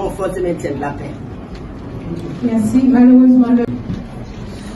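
An elderly woman speaks calmly into a microphone, heard through loudspeakers.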